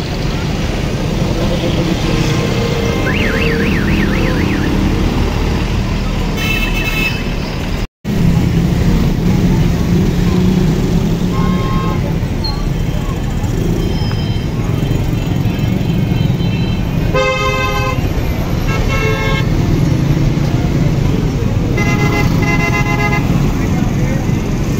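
A bus engine rumbles steadily in street traffic.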